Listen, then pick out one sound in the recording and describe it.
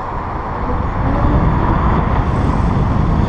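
A car passes close by.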